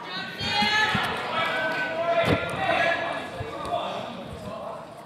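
Sneakers squeak sharply on a gym floor in a large echoing hall.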